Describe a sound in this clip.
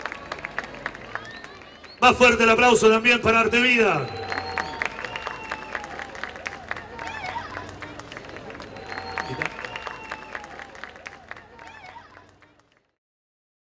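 A crowd claps and cheers in a large open space.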